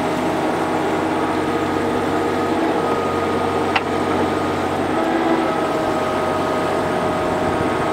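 A mini excavator's bucket scrapes through soil.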